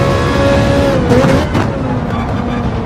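A racing car engine drops sharply in pitch as the car slows for a corner.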